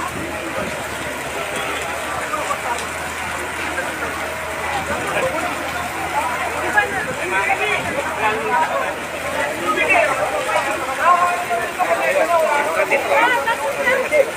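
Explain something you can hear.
Rain patters steadily on umbrellas.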